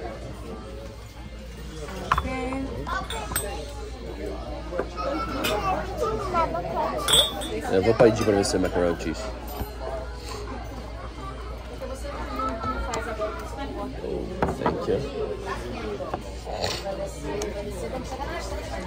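Several people chatter.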